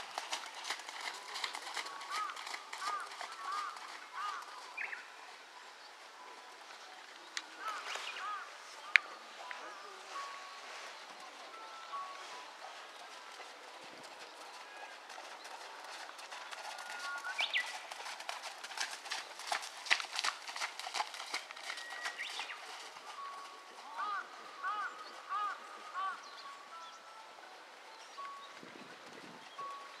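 A horse's hooves thud softly on sand at a trot.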